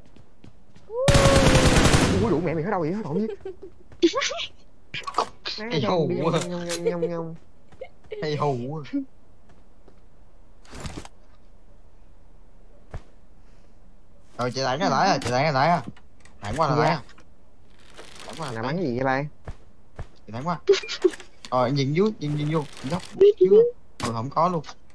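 A young woman talks and exclaims with animation close to a microphone.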